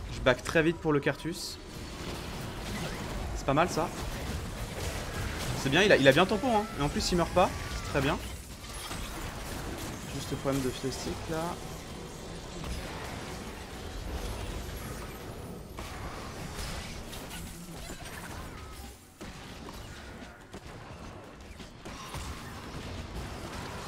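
Game sound effects of spells and hits play steadily.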